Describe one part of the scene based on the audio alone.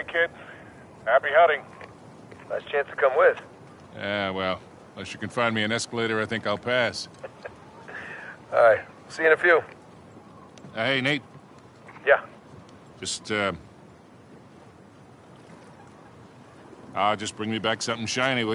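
An older man answers in a gravelly voice over a radio.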